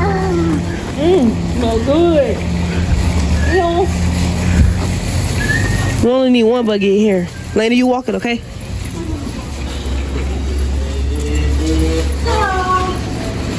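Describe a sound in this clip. A young child babbles and sings in a high voice close by.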